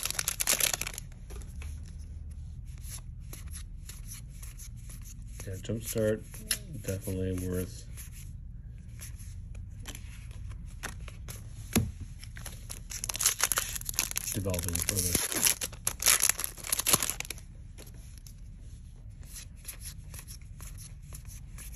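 Playing cards click and slide as they are flipped through one by one.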